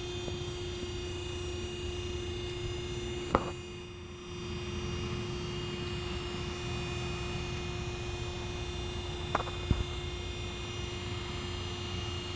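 A large hydraulic door hums steadily as it slowly swings open.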